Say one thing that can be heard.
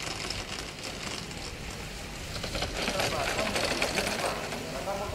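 Skis scrape and hiss across hard snow.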